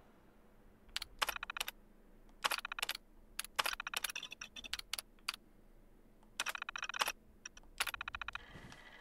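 A computer terminal chirps in rapid bursts as text prints out.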